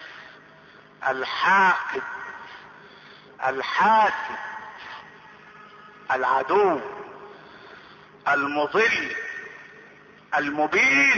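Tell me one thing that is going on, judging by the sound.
A middle-aged man chants loudly in melodic bursts into a microphone, with reverberation trailing after each phrase.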